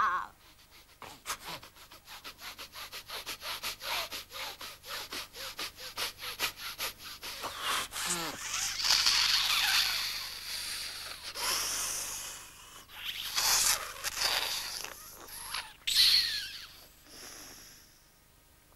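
Dry leaves rustle and crackle as a creature moves through them.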